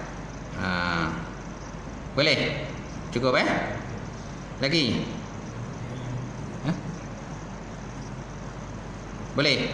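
A middle-aged man reads aloud slowly through a microphone in an echoing room, with long pauses.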